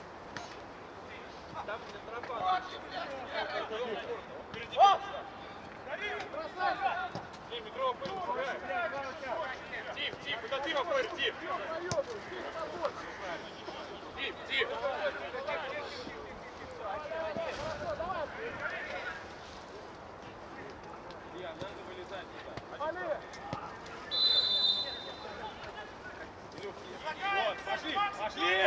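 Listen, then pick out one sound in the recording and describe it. Men shout to each other across an open-air pitch.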